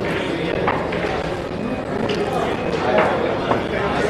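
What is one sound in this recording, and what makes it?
Billiard balls click together.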